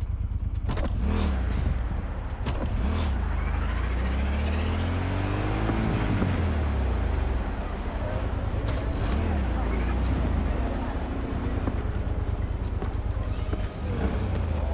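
A motorcycle engine rumbles and revs up and down.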